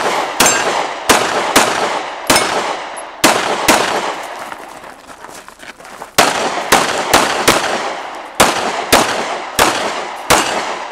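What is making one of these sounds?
A handgun fires sharp shots in quick bursts outdoors, each echoing off the hills.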